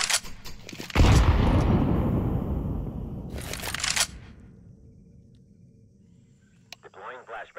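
A smoke grenade bursts open with a loud, slowly fading hiss.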